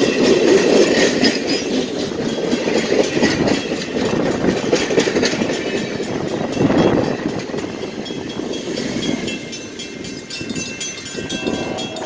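A train rumbles and clatters past very close by.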